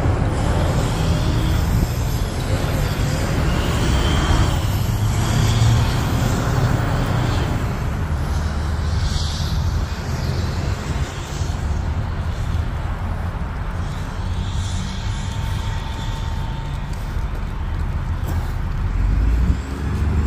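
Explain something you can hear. Strong wind blusters outdoors, rumbling against the microphone.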